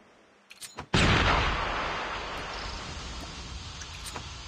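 A smoke grenade bursts and hisses loudly, then slowly fades.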